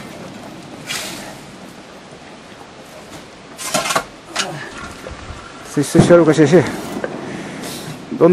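A shovel scrapes into loose soil.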